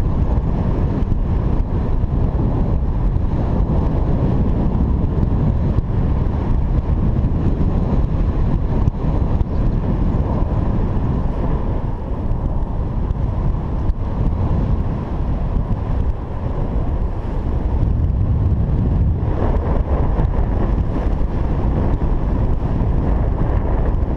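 Strong wind rushes and buffets loudly past, as if heard while flying high outdoors.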